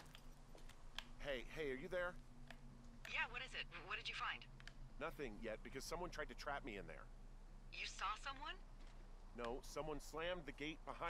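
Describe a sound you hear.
A man talks calmly over a two-way radio.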